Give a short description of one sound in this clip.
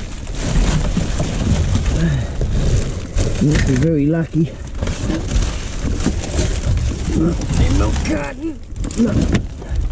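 Debris and plastic rustle and clatter as rubbish is shifted.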